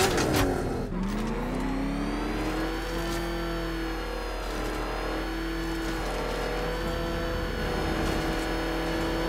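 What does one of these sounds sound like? A car engine hums steadily as the car speeds along.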